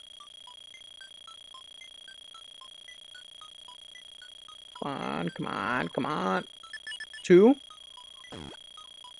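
Short electronic beeps tick at a steady pace.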